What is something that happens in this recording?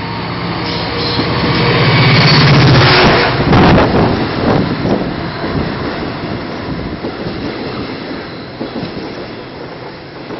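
A diesel train rumbles loudly past close below and fades away.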